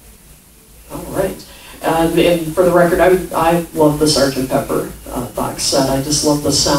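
An older woman speaks into a microphone.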